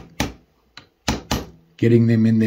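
A wooden handle knocks against a metal vise.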